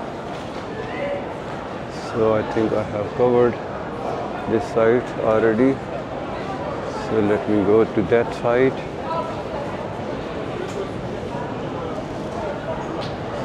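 A crowd murmurs and chatters steadily all around.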